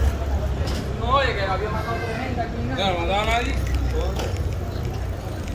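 Men and women chat nearby on the street.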